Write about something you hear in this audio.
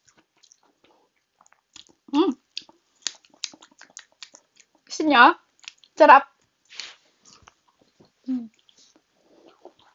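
A woman chews crunchy food close by.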